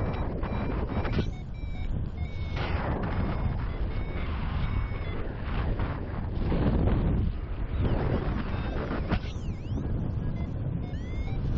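Strong wind rushes and buffets steadily past.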